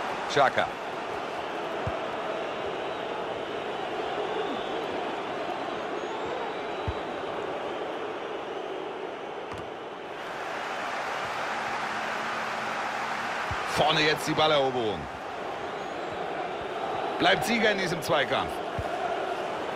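A large crowd murmurs and chants steadily in a stadium.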